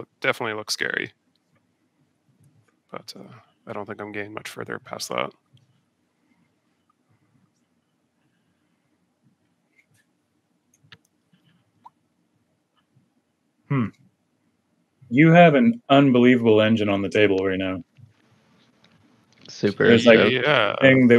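Men talk casually over an online call.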